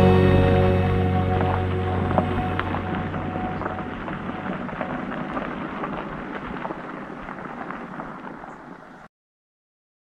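A car engine hums as the car drives away and fades into the distance.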